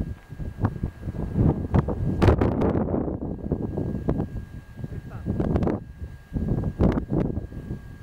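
Strong wind gusts and rumbles outdoors, rising and falling.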